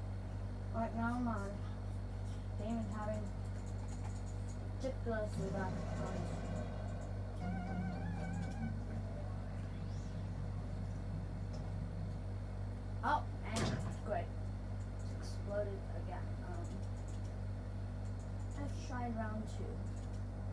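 A young boy talks casually nearby.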